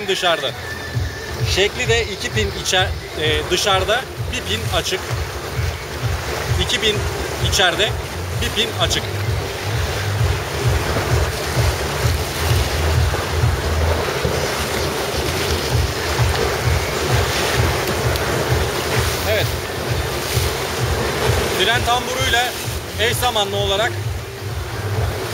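A man talks calmly and clearly close to a microphone.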